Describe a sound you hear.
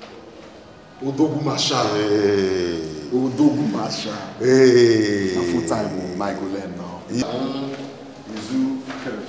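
A man speaks loudly and with emotion, close by.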